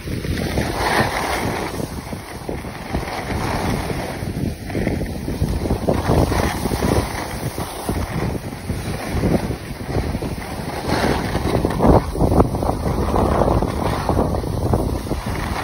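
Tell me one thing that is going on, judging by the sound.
Wind rushes past, loud and blustery.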